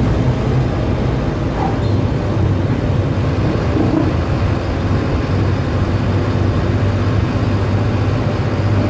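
A bus body rattles and rumbles over the road.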